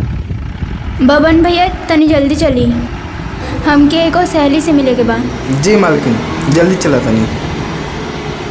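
A young woman speaks animatedly nearby.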